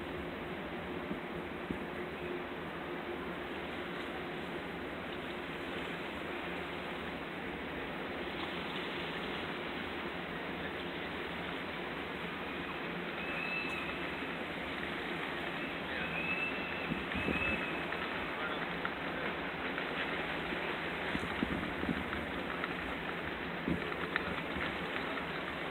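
Water washes and splashes steadily nearby.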